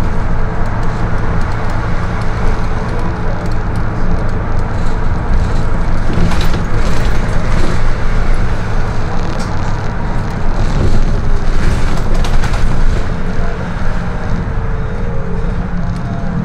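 The bus body rattles and creaks over the road.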